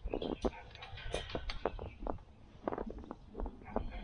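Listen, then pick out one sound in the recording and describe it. A metal gate creaks open.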